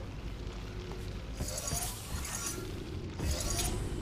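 A heavy cube thuds down onto a floor button.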